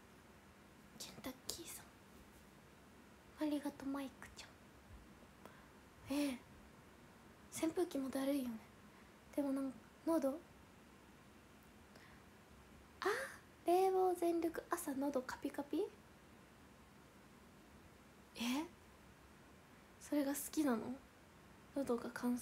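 A young woman talks casually and close by, in short bursts with pauses.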